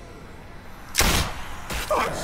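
A pistol shot rings out sharply.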